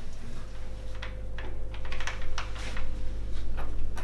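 A door latch rattles and clicks under fumbling hands.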